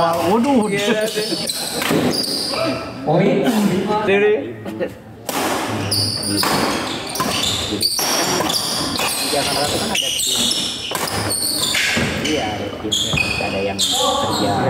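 A crowd of men chatter and shout in an echoing hall.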